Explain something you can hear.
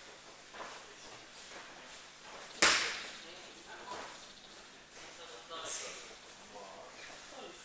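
Feet shuffle and scuff on a padded mat.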